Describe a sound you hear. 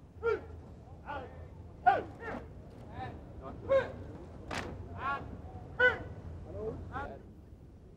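Soldiers march in step on grass.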